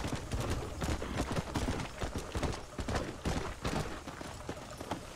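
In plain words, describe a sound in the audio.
A horse's hooves thud along steadily.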